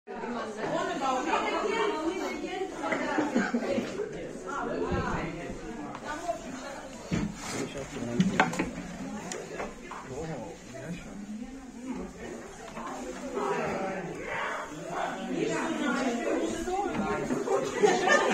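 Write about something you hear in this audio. Young men and women talk and laugh nearby in a room.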